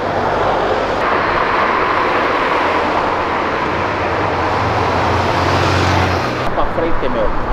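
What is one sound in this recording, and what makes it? A sports car engine hums as the car cruises by.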